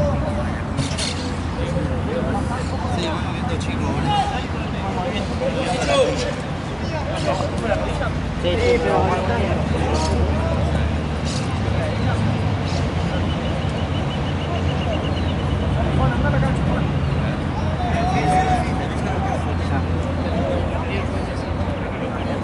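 Young people talk and shout across an outdoor field.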